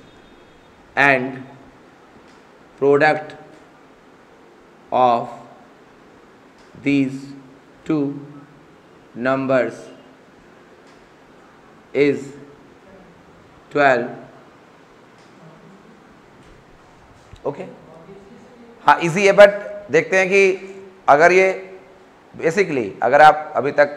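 A man speaks clearly and calmly, like a teacher explaining, close by.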